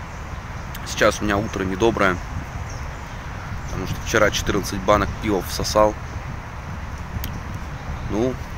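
A young man talks calmly, close to a microphone.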